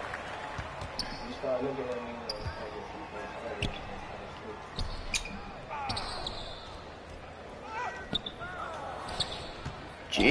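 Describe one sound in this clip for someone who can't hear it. Sneakers squeak sharply on a basketball court.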